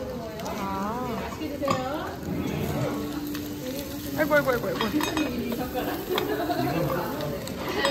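A metal lid clinks against a pot.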